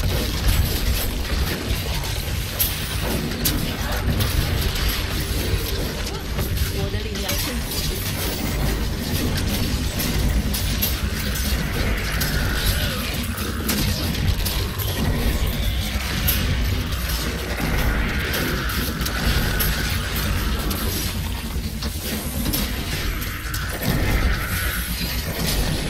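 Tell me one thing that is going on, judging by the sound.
Game spells burst and crackle in rapid, repeated blasts.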